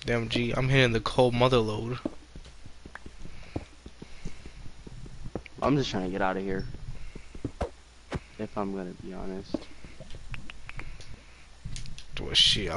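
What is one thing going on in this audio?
A pickaxe chips at stone with soft, repeated knocks.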